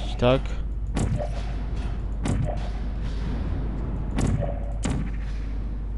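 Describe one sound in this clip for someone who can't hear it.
A science-fiction gun fires short zapping shots.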